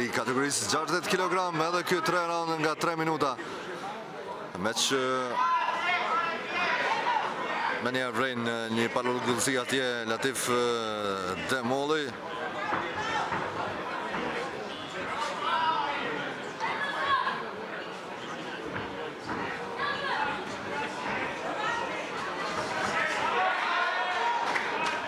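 A crowd of people chatters and shouts in a large hall.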